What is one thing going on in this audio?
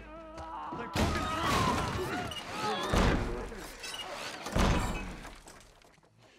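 Creatures shriek and growl nearby.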